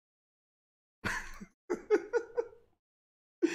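A young man laughs in short bursts.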